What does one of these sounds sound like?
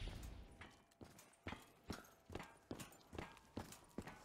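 Footsteps crunch steadily over the ground.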